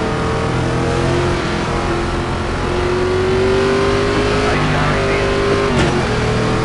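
Race car engines drone and rumble steadily.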